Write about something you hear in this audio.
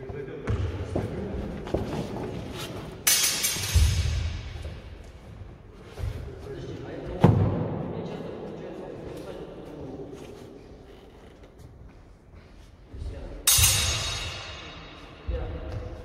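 Wooden practice swords clack together in a large echoing hall.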